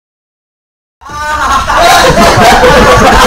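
A crowd of young people laughs and cheers.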